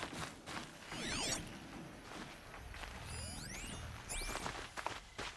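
Electronic scanning tones chirp and sweep up and down.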